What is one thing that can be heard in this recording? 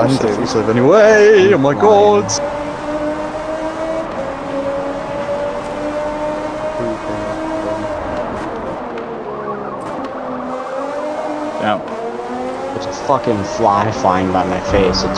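A racing car engine roars and whines, rising and falling in pitch as it shifts gears.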